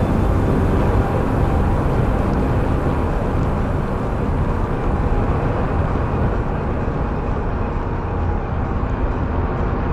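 A car drives fast on a motorway, with a steady low road and engine rumble from inside the car.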